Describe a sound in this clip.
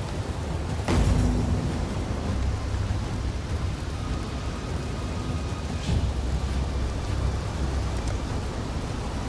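A magic portal hums steadily.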